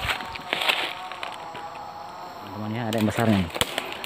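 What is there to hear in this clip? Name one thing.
Footsteps crunch on dry leaf litter.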